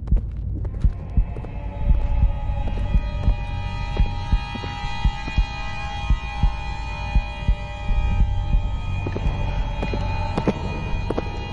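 Footsteps thud slowly on a hard floor, echoing in a narrow passage.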